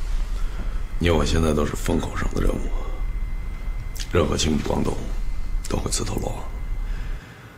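A man speaks tensely and firmly, close by.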